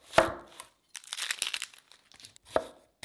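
Dry onion skin crackles as it is peeled.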